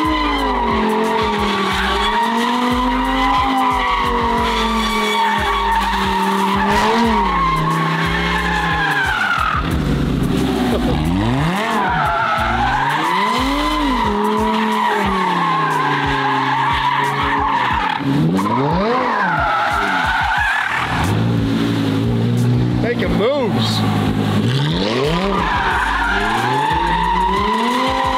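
Tyres screech on pavement as a car drifts.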